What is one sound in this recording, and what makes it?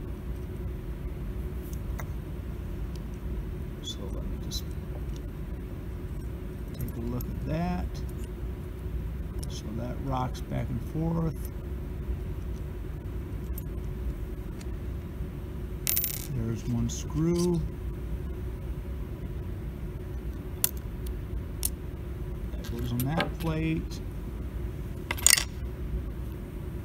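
Small plastic and metal parts click and scrape as they are handled close by.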